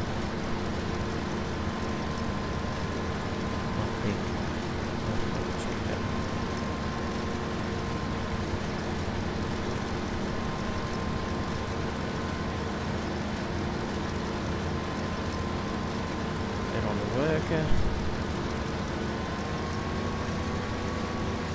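A combine harvester engine drones steadily while cutting grain.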